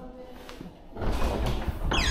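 A glass door is pushed open.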